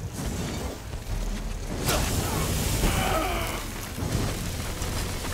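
A flamethrower roars in bursts.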